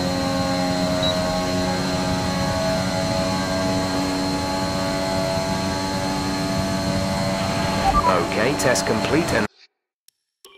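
A racing car engine whines at a high, steady pitch.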